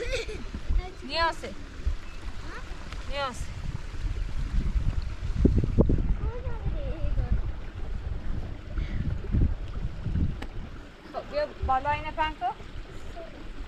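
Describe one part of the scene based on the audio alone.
A young child calls out in a high voice.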